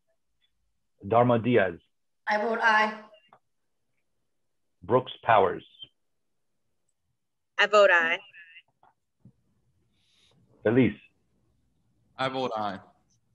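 A middle-aged man speaks briefly over an online call.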